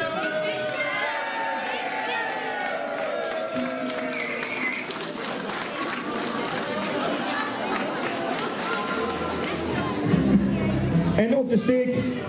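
A crowd sings and cheers together loudly.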